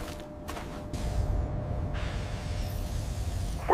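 A drill hums and rumbles.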